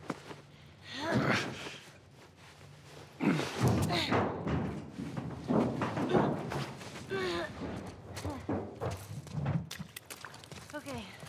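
A man talks in a low, calm voice.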